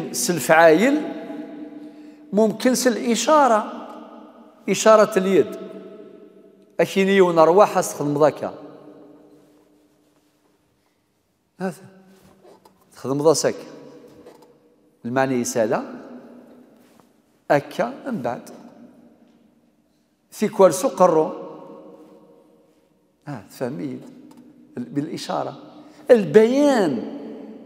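An elderly man speaks with animation into a microphone in an echoing room, pausing between phrases.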